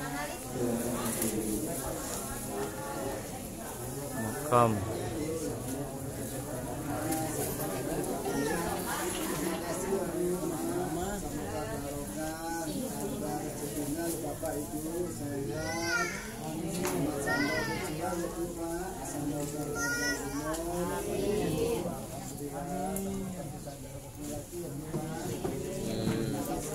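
A crowd of men and women chatter nearby throughout.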